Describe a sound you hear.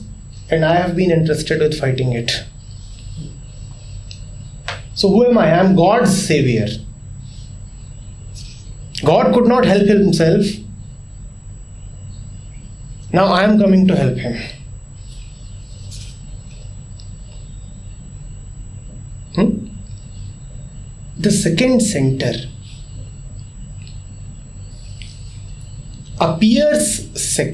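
A man speaks calmly in short bursts with long pauses, close to a microphone.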